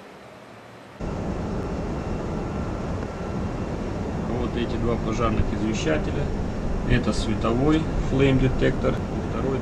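Machinery drones with a loud, steady roar.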